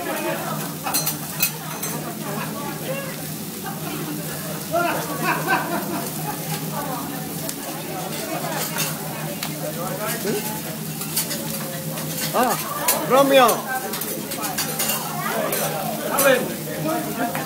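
A metal spatula clinks on a griddle.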